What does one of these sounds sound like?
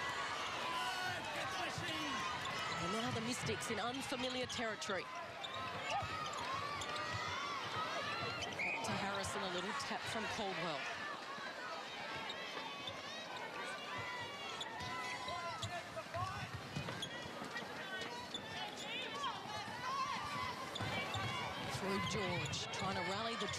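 Shoes squeak on a wooden court.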